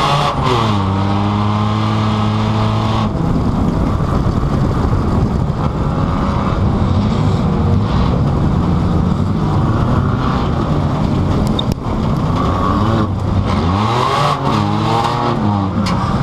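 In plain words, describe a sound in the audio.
Loose metal parts of a car rattle and bang over rough ground.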